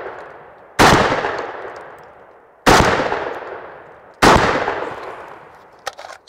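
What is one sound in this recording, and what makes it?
A rifle fires loud shots that echo through the woods.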